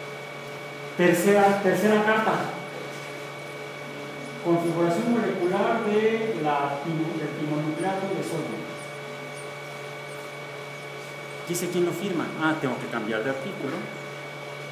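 A young woman speaks nearby in a lecturing tone.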